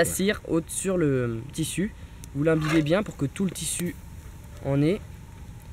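Scraps slide and scrape out of a metal pan.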